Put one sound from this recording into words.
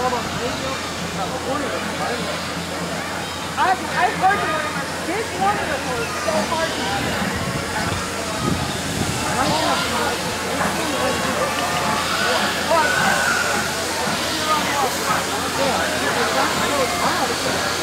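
A steam locomotive chuffs as it slowly approaches.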